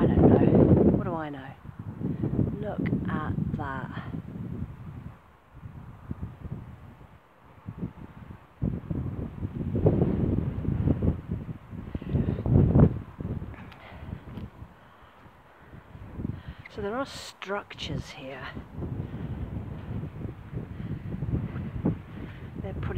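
Wind gusts and rumbles across open ground.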